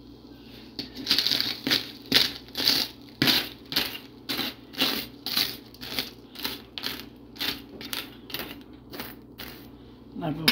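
A knife taps on a crisp baked pastry crust.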